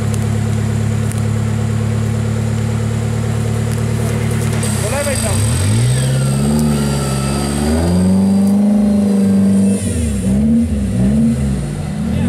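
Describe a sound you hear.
Tyres churn and spin through deep mud.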